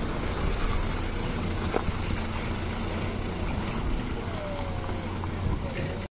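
A truck's diesel engine rumbles steadily close by.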